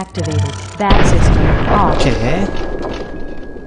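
A rifle fires a loud shot that echoes.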